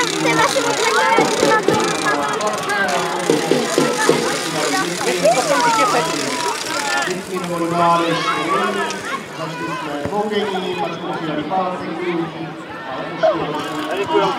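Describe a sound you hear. Children shout and call out across an open field outdoors.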